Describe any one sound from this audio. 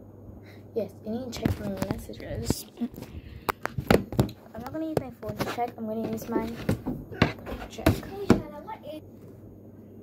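A young woman speaks close to a microphone, with animation.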